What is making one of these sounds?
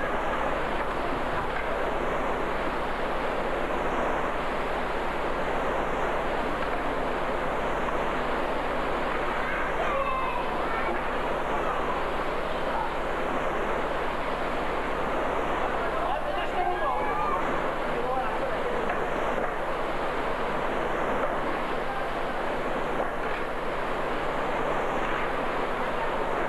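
Rushing water roars loudly and steadily over a weir.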